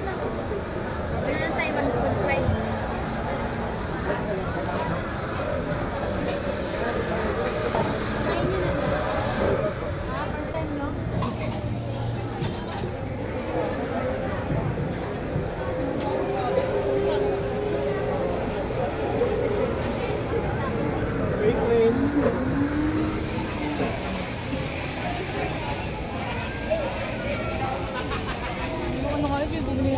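A dense crowd chatters outdoors.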